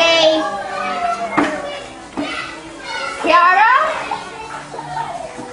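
Young girls talk and call out with high voices close by.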